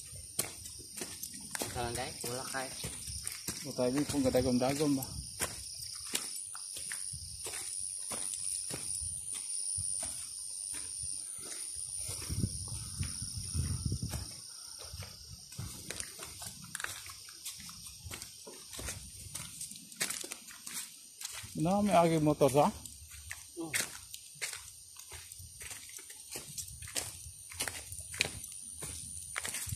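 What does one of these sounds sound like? Footsteps crunch quickly on leaves and gravel as someone runs.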